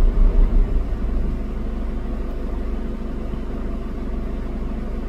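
Motorbike engines hum nearby.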